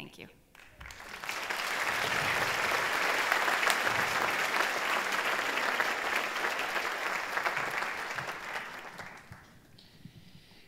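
An audience applauds in a large hall.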